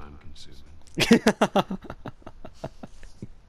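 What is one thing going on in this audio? A young woman speaks with amusement, close by.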